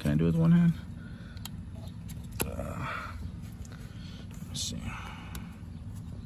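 Plastic parts click and rattle as they are pried loose.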